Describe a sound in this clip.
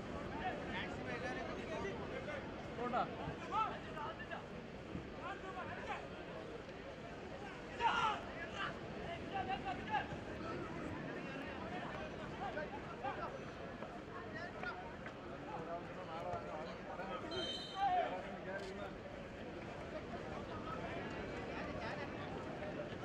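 A large outdoor crowd cheers and shouts throughout.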